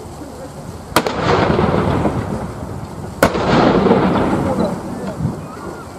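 A field gun fires two loud booming shots that rumble away across open ground.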